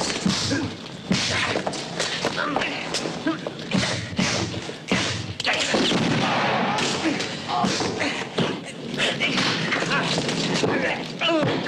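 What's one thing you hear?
Men grunt and struggle in a fight.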